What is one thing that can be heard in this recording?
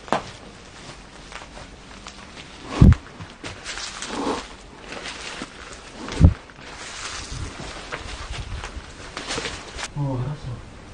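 Footsteps rustle through leafy plants.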